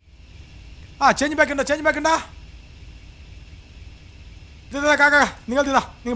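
A man sings loudly and close by.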